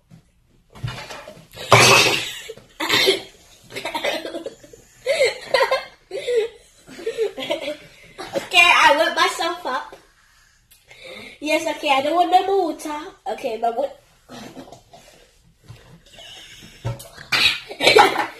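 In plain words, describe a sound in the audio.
A young girl laughs loudly and talks excitedly close by.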